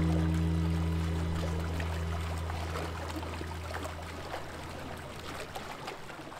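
Small waves lap softly against a wooden jetty.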